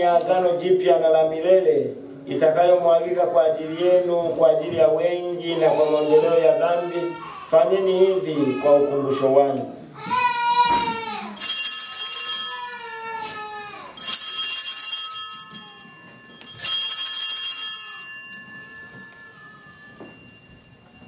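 A man chants in a sung voice, echoing slightly in a large room.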